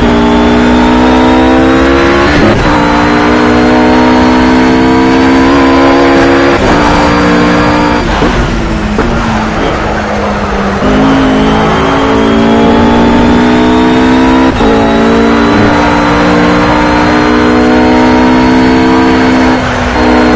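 A GT3 race car engine revs high as it accelerates, its pitch climbing and dropping with each upshift.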